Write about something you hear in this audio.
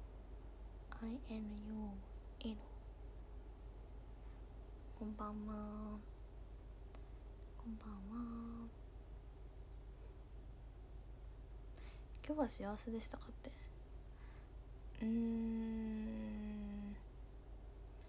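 A young woman speaks softly in short bursts, close to the microphone.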